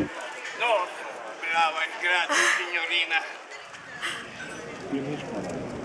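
Willow rods rustle and creak as an elderly man weaves them.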